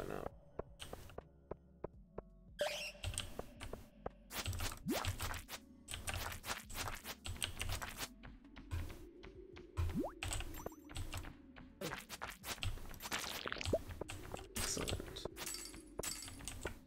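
Quick footsteps patter across a stone cave floor.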